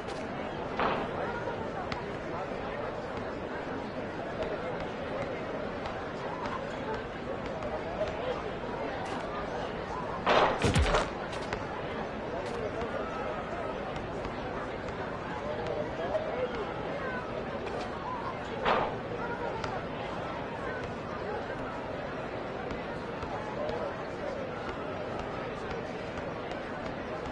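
A crowd murmurs steadily outdoors.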